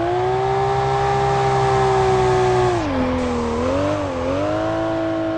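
A racing car engine roars at high revs, dropping in pitch then rising again.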